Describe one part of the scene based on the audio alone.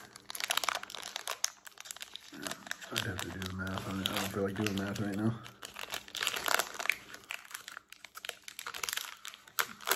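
Foil wrapping crinkles and tears as it is pulled open by hand.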